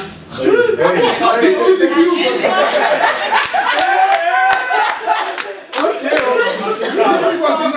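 A group of young men laughs heartily nearby.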